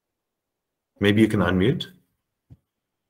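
A man speaks calmly over an online call.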